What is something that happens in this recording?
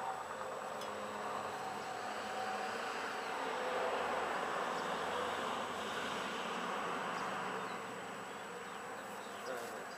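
Metal parts clink and scrape.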